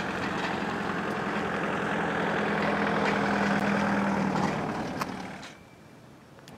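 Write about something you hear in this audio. A truck engine idles nearby with a low, steady rumble.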